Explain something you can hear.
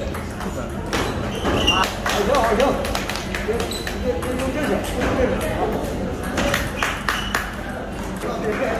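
A table tennis ball clicks back and forth off paddles and a table.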